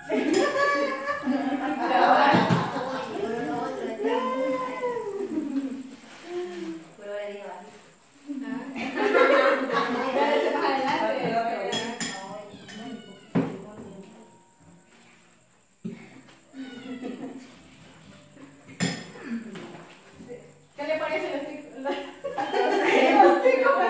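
Young women talk and laugh together nearby.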